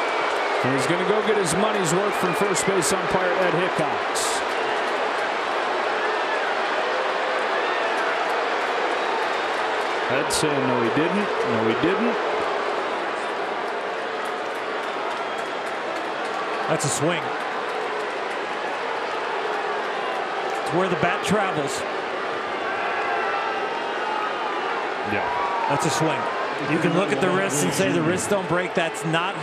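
A large crowd murmurs steadily in a big open stadium.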